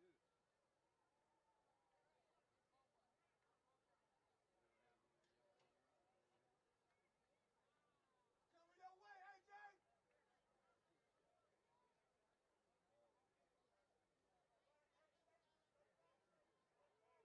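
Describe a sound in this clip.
A crowd murmurs and chatters in the distance outdoors.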